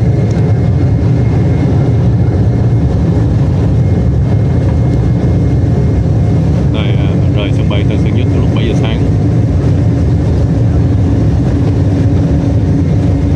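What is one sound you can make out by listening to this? Jet engines roar loudly and steadily inside an airliner cabin.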